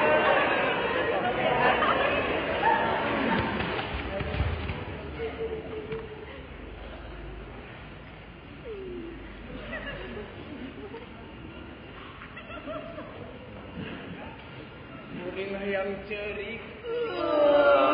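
A group of young performers sing and call out in a large echoing hall.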